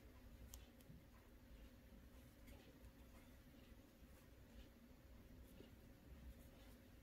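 A metal crochet hook clicks softly against yarn.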